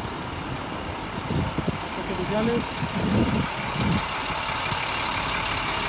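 A large truck engine rumbles as the truck drives past close by.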